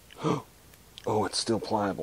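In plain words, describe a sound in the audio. A plastic bottle cap snaps open.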